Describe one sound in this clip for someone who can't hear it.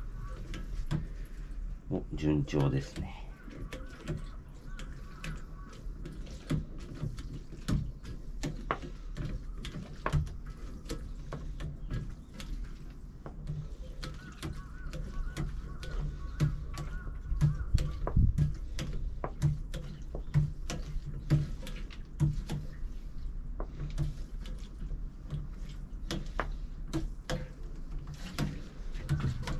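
Liquid trickles and gurgles through a hand pump tube into a tank.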